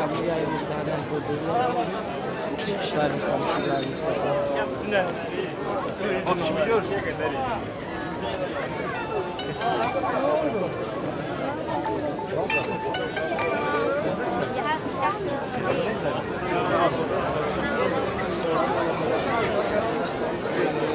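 A large crowd chatters and cheers outdoors nearby.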